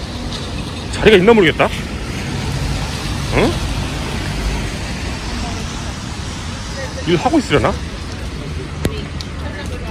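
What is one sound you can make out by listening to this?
Traffic hums along a wet street outdoors.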